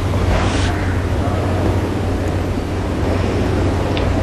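A young woman speaks quietly.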